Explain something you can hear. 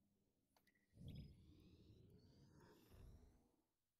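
A spaceship engine roars with a deep rumble.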